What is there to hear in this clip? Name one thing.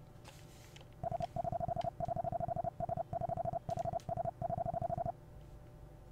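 Rapid electronic game blips tick as text types out.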